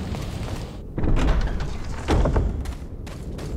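A heavy wooden door bangs and rumbles open.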